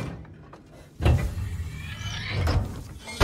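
A metal latch clanks shut.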